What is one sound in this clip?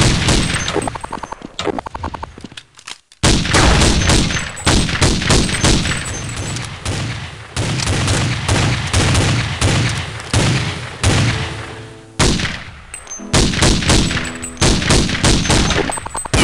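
Gunshots crack loudly, one after another, with short echoing tails.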